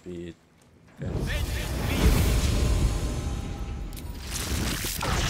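A magic spell bursts with a loud roaring whoosh.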